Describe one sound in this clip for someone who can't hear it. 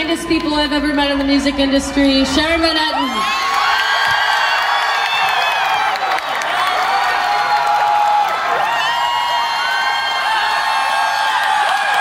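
A rock band plays loudly through large loudspeakers.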